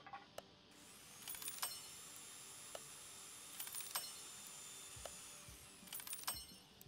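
A steady electronic tone hums, then stops.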